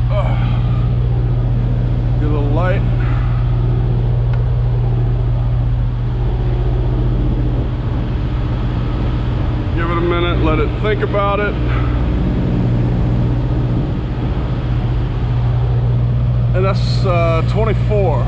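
A truck's refrigeration unit hums steadily nearby.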